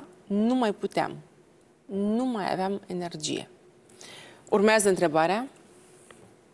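A woman speaks calmly and clearly through a microphone.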